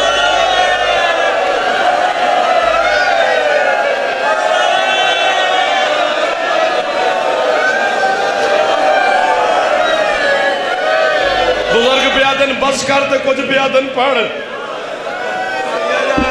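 A man chants loudly and with fervour through a loudspeaker, echoing in a large space.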